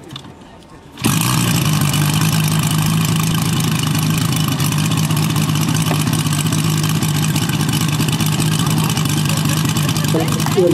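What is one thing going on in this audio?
A model plane's engine bursts into life and roars steadily up close.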